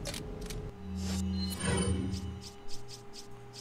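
A game menu opens with a short whooshing swell.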